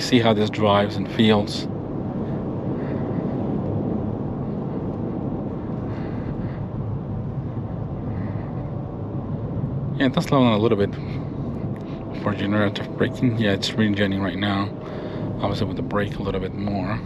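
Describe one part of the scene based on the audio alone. A car drives along with a steady low road rumble heard from inside the cabin.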